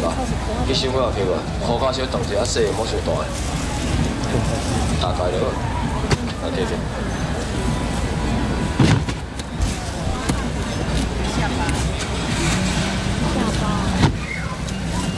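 A crowd of men and women chatters all around outdoors.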